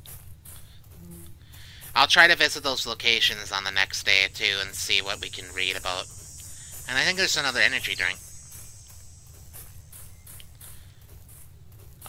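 Footsteps crunch steadily over dry leaves.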